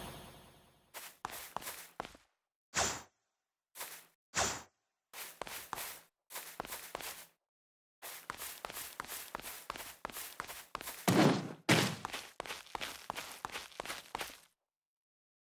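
Footsteps run across grass and stone.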